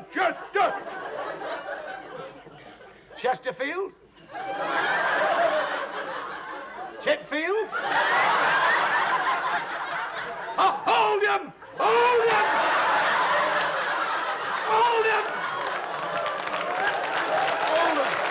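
A middle-aged man speaks loudly and with animation, close by.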